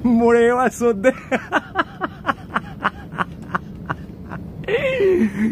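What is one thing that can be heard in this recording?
A middle-aged man laughs heartily close by.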